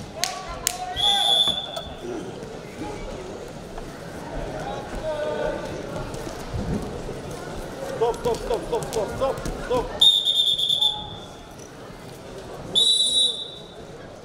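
A referee blows a shrill whistle several times.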